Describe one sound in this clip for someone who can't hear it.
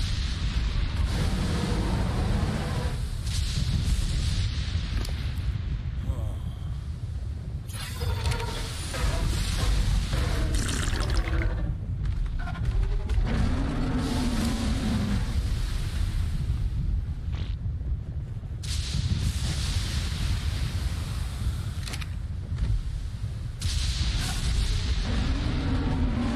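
A large creature growls deeply.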